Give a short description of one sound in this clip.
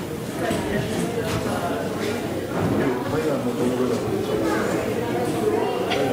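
A brass band plays along with the singing.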